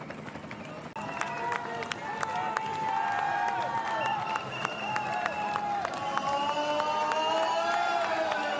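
A crowd of spectators cheers loudly nearby.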